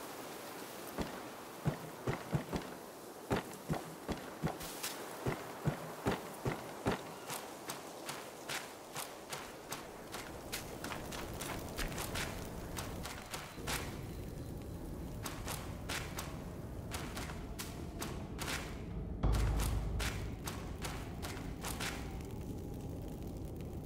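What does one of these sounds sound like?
Footsteps fall steadily on wood and stone.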